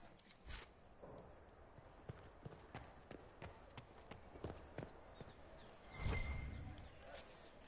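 Footsteps tap on stone as a game character walks.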